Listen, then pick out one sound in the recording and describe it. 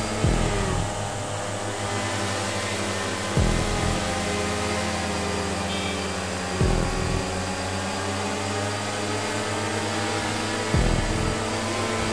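A motorcycle engine revs at high speed.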